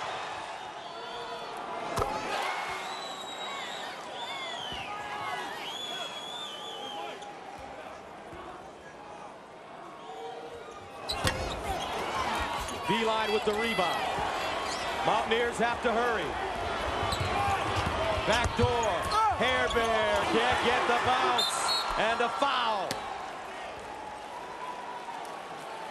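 A large crowd murmurs and then roars loudly in an echoing arena.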